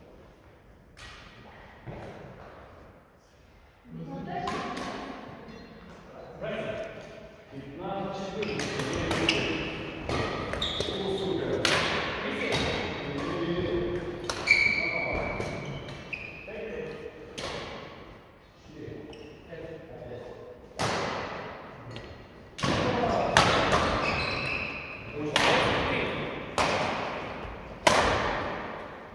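Rackets strike a shuttlecock with sharp pops, in a large echoing hall.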